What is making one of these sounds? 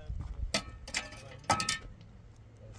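A shovel scrapes and thumps in dirt.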